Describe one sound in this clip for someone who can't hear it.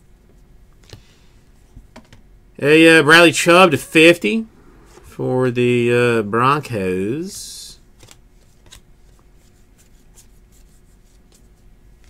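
Trading cards flick and rustle as they are shuffled through by hand.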